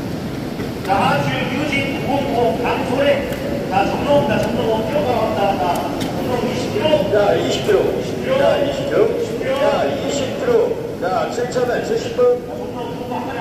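Several men and women talk over one another nearby.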